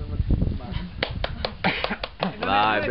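A man claps his hands several times.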